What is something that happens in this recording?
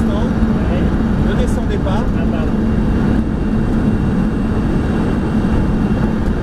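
Wind rushes loudly past a fast-moving car.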